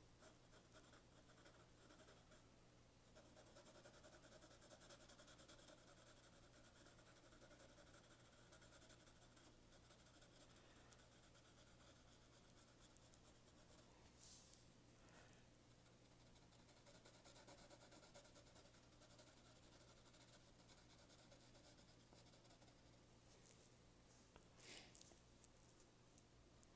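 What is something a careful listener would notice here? A pencil scratches and rustles softly across paper in quick strokes.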